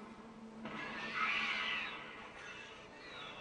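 A winged creature lets out a harsh shriek.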